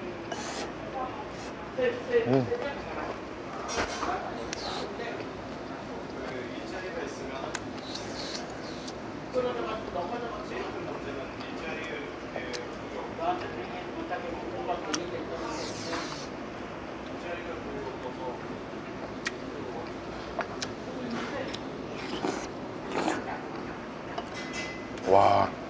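Chopsticks click against dishes.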